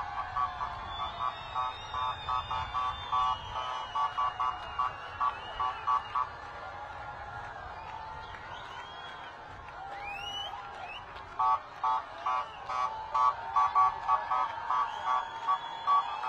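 A crowd of men and women cheers and shouts outdoors.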